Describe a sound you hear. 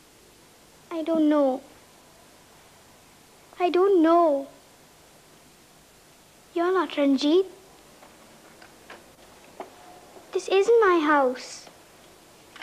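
A young girl answers in a tense, quiet voice.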